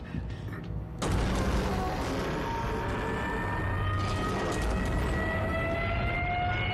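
A heavy metal door rumbles and grinds open.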